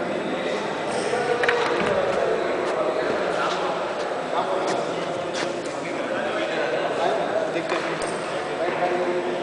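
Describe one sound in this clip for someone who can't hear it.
Many young men chatter and call out nearby.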